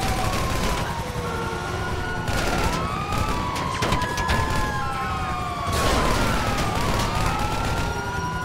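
Police sirens wail and swoop nearby.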